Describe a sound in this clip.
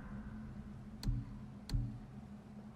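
Soft menu clicks tick twice.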